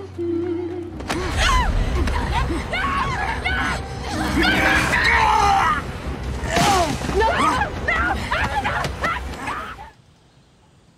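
Several women shout and struggle in a scuffle.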